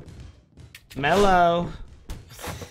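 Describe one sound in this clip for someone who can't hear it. A man exclaims in a drawn-out, rising voice.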